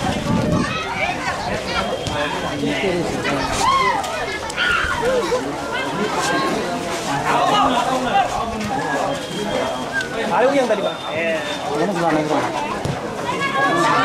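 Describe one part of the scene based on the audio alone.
A football thuds as players kick it.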